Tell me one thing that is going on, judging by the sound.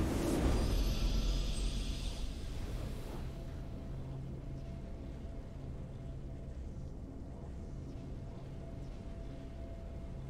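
Triumphant game music swells.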